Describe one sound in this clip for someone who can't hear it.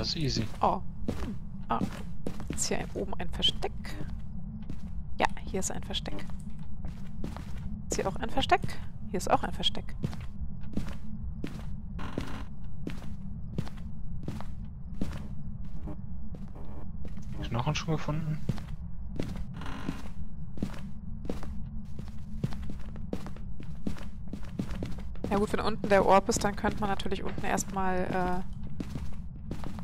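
Footsteps thud steadily across a carpeted floor.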